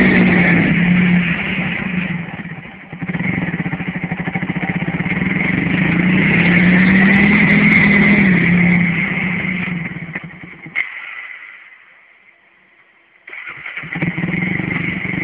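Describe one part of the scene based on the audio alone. A quad bike engine revs loudly and sputters.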